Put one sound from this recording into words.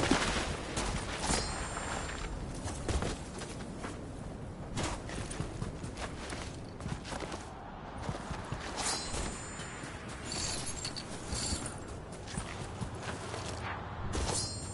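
Footsteps run quickly over sand and dirt.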